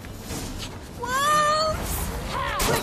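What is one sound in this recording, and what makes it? A wolf howls.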